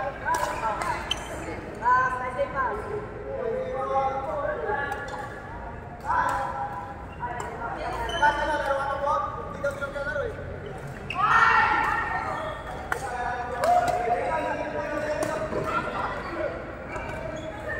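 Several men and women talk and call out across a large echoing hall.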